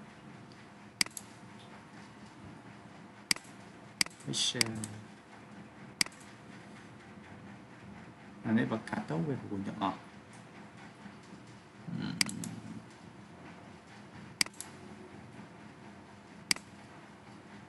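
A computer mouse clicks sharply now and then.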